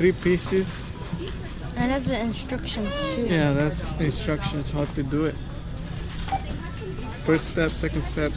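Plastic packaging crinkles and rustles as a hand handles it.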